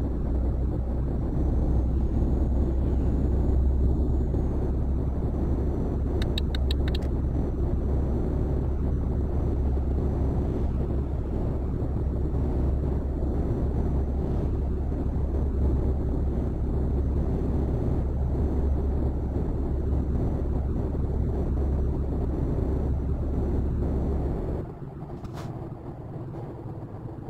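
Tyres roll and rumble on a smooth road.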